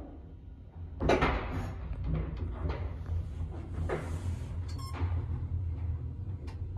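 An elevator car rumbles and hums as it moves.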